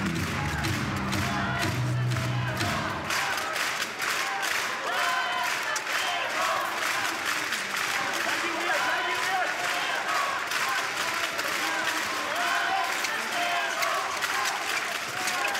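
A large indoor crowd murmurs and cheers in an echoing hall.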